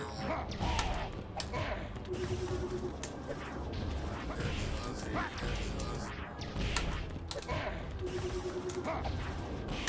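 A fighter grunts and cries out in pain.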